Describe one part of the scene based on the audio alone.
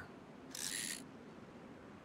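A fish splashes in water.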